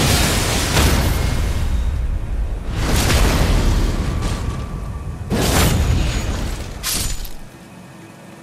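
Heavy weapons clash and slam with loud metallic blows.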